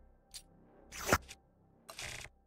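A magical energy attack bursts with a loud whoosh.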